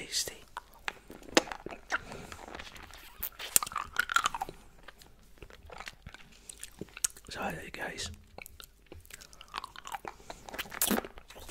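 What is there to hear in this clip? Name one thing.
A man whispers and mouths sounds close to a microphone.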